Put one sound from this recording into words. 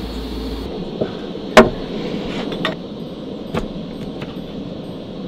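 A knife knocks on a wooden board.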